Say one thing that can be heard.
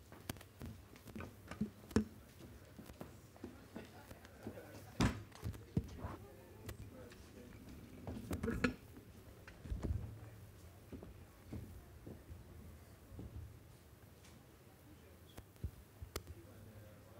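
Men and women talk and murmur nearby in a room.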